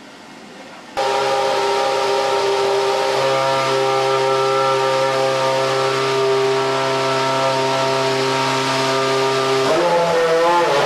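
A race car engine idles loudly with a steady, high drone.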